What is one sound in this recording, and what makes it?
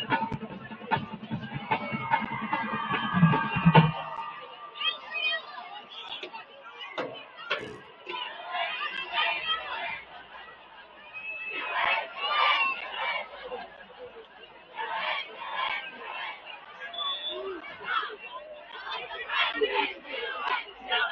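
A crowd cheers and shouts from the stands outdoors.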